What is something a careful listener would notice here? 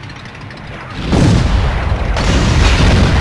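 A fiery explosion booms and roars.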